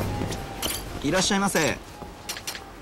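A young man greets cheerfully.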